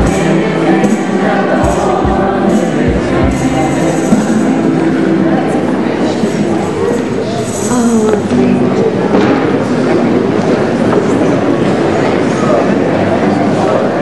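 A crowd of men and women sings together nearby.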